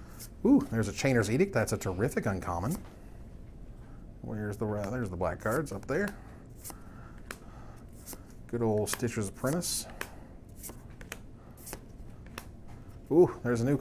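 Playing cards softly click and rustle as a hand flips through them.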